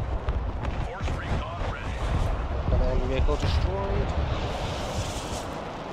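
A missile launches with a rushing roar.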